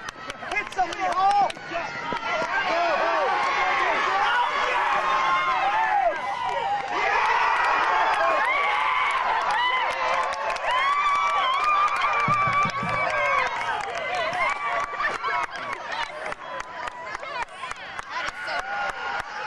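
A crowd of spectators shouts and cheers loudly close by.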